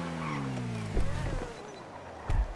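A car door opens with a thud.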